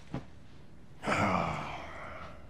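A man drops heavily onto a couch.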